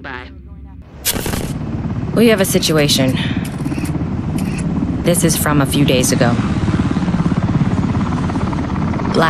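Helicopter rotors roar loudly.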